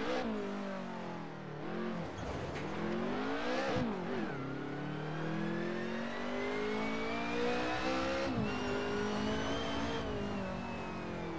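A racing car engine revs hard, rising and dropping in pitch as the gears change.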